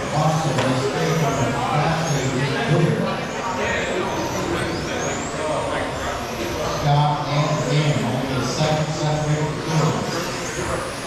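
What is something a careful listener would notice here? Small electric race cars whine as they speed around a track.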